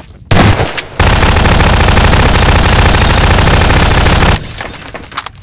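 An automatic gun fires a long, loud burst.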